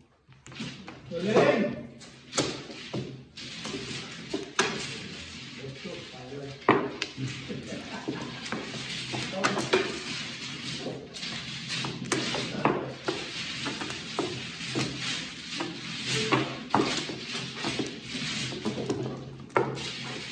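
Plastic game tiles clatter and click against each other on a table.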